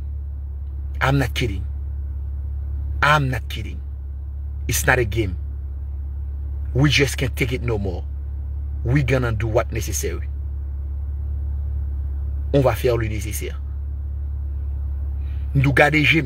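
A man speaks animatedly in short bursts, close to a phone microphone.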